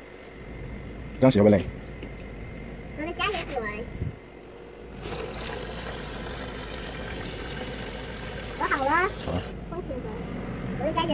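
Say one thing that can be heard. Water splashes and sloshes in a basin.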